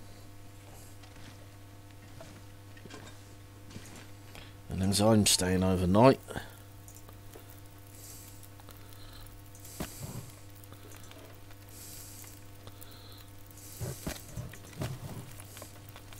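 A fire crackles in a wood stove.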